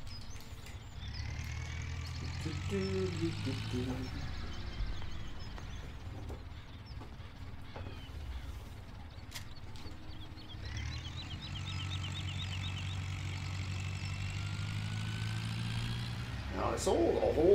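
A tractor engine rumbles and revs.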